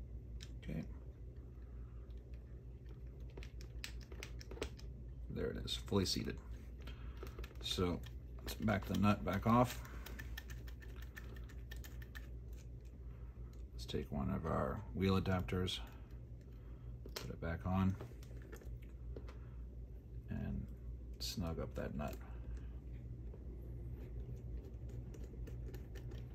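A small screwdriver turns screws with faint clicks and scrapes.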